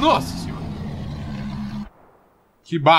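A monster lets out a deep, snarling roar.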